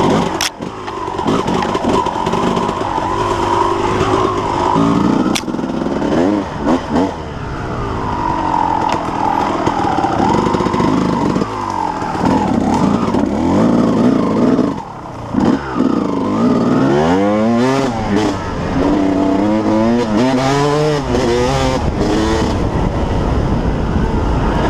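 Tyres crunch over dry leaves and dirt.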